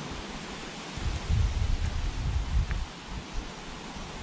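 Wind blows and rumbles across the microphone outdoors.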